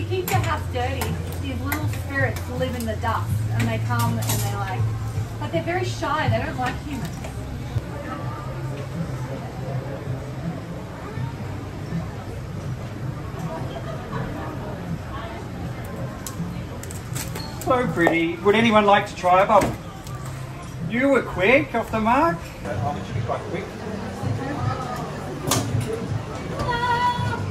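A crowd of adults and children chatters nearby.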